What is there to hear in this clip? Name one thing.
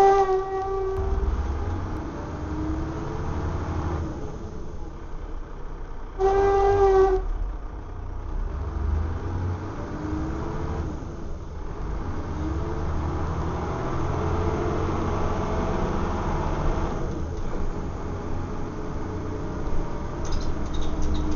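A bus engine rumbles and whines as the bus drives along.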